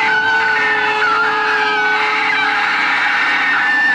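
A man screams loudly.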